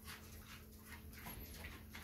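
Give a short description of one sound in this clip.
A pig grunts and snuffles close by.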